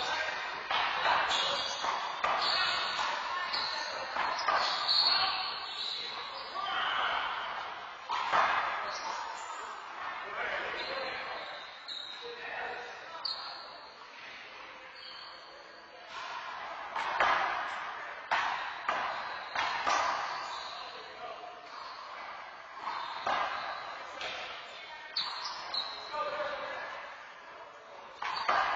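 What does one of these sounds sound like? A rubber ball smacks sharply against walls, echoing in a large hard-walled court.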